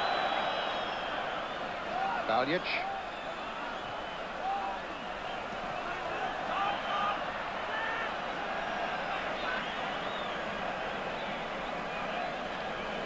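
A large crowd cheers and whistles steadily in an open stadium.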